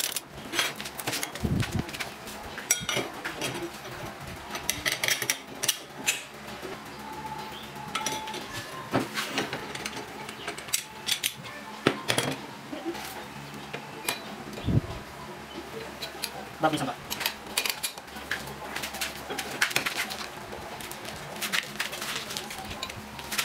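Metal parts clink and clatter as they are handled.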